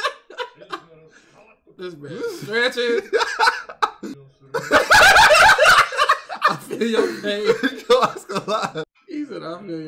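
Young men laugh loudly close to a microphone.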